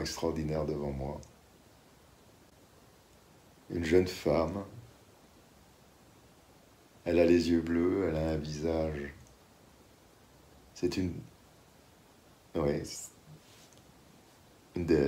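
A middle-aged man speaks calmly in short bursts, heard through an online call.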